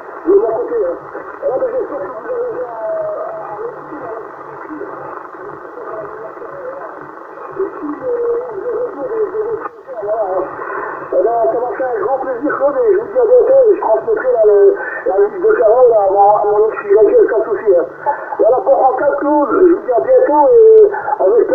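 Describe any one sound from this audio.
Voices talk over a crackly radio loudspeaker.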